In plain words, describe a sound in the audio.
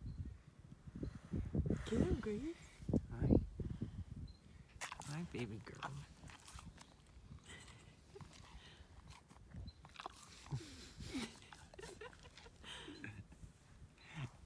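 A cow licks and nuzzles with wet slurping sounds.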